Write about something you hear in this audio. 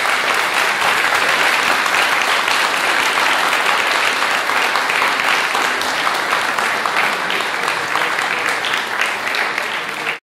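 A lute is plucked.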